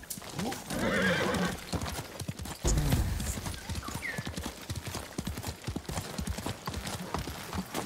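A horse gallops along a dirt path with thudding hooves.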